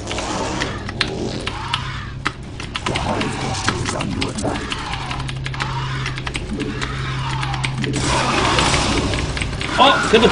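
Keys clatter rapidly on a mechanical keyboard.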